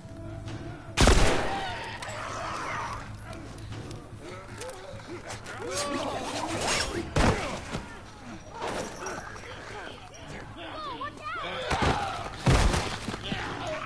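Heavy blows and thuds land during a fight.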